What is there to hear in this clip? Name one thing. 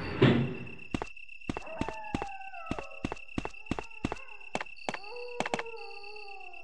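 Footsteps clack on a stone floor.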